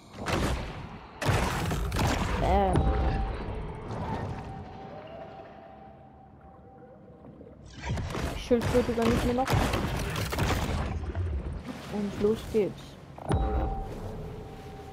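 Water rushes and splashes as a shark swims.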